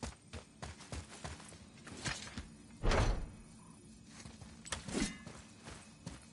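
A heavy stone wheel grinds and clunks as it turns.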